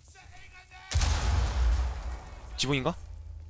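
An explosion booms nearby with a deep rumble.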